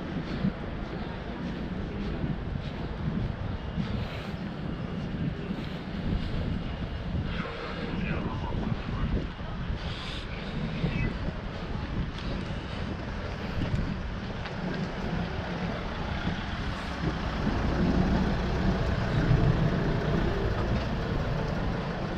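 Wind rumbles outdoors on a street.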